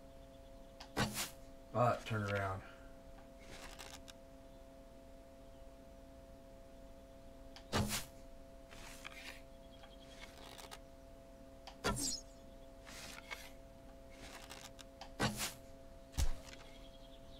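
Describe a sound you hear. A bowstring twangs sharply as arrows are shot, several times.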